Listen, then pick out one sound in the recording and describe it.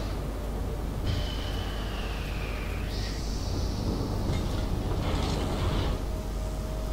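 A large ship's engine rumbles low and steadily.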